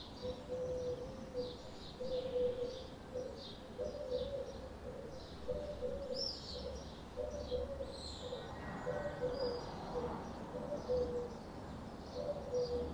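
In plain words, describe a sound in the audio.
Birds chirp overhead outdoors.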